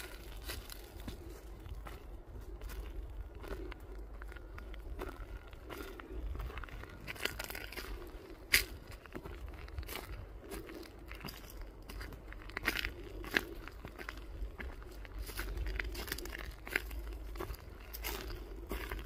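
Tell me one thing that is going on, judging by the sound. Footsteps crunch steadily on a dirt path.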